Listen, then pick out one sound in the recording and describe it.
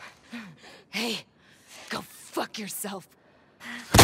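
A man pleads in fear.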